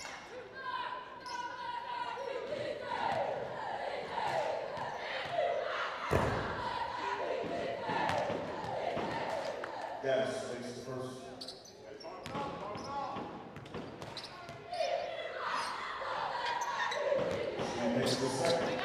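Sneakers squeak sharply on a hardwood court, over and over.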